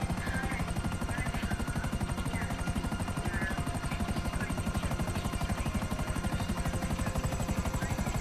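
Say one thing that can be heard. Helicopter rotor blades thump rapidly and steadily overhead.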